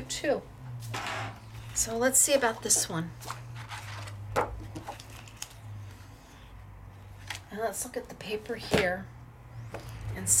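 Paper cards slide and tap on a table.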